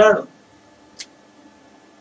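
A marker cap clicks off.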